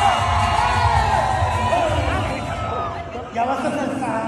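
A crowd cheers and chatters loudly.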